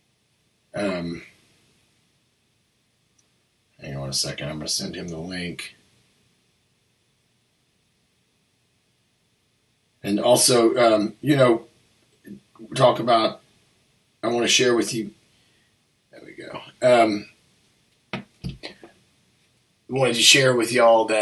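A man speaks calmly and up close into a microphone, in short bursts with pauses.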